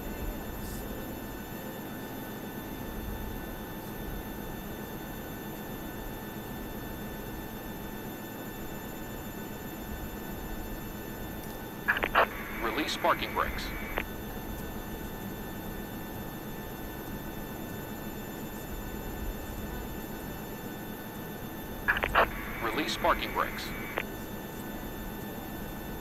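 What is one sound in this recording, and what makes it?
A jet engine hums steadily at idle nearby.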